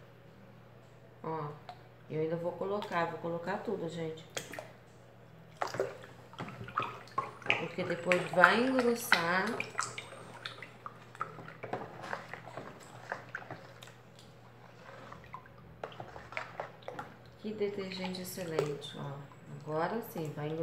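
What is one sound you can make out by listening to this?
Water pours into a tub.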